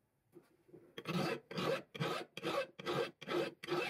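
A file rasps back and forth across metal in a quick, steady rhythm.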